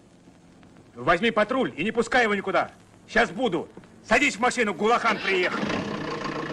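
A man speaks urgently into a radio handset.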